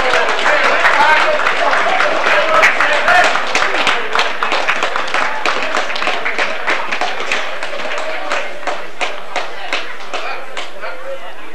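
A crowd of spectators claps outdoors.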